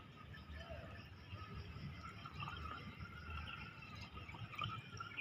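Water pours from a jug into a pipe and gurgles.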